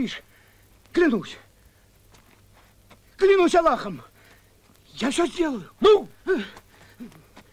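A man strains and cries out with effort.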